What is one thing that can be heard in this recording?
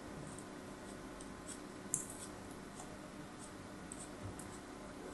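A blade scrapes and crumbles soft sand close up with small crisp crackles.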